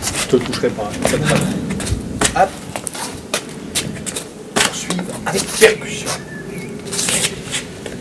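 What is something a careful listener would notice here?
Feet shuffle and scuff on stone paving.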